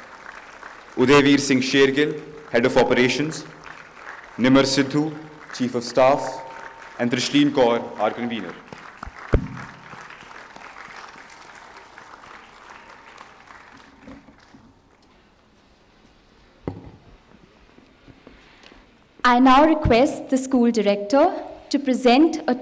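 A young woman speaks through a loudspeaker in a large echoing hall, announcing in bursts.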